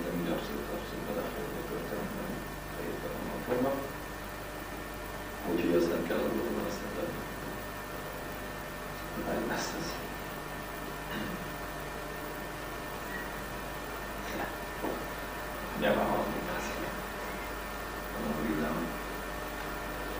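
Young men talk in turns, heard from across a room.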